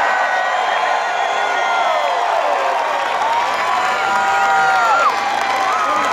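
A large stadium crowd sings along in unison.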